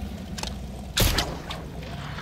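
A grappling gun fires with a sharp bang.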